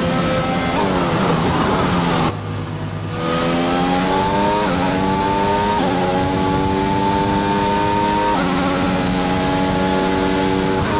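A racing car engine screams at high revs, dropping in pitch as it downshifts and climbing again through the gears.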